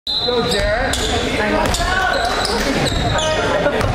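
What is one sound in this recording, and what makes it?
A basketball bounces with hollow thumps.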